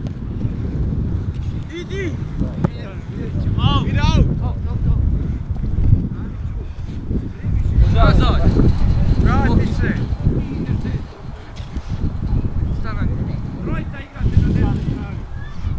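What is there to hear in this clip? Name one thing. Wind rumbles across an open field outdoors.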